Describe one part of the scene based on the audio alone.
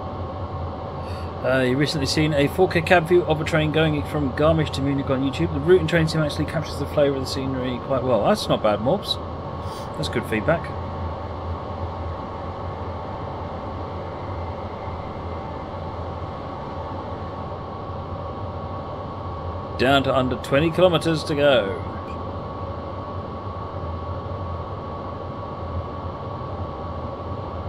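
A train's electric motor hums steadily as it rolls along the rails.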